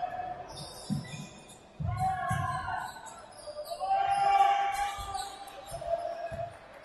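Sneakers squeak sharply on the floor.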